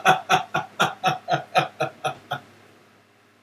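A man laughs loudly in bursts, heard through a microphone.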